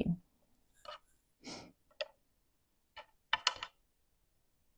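Small wooden pieces click and tap against each other.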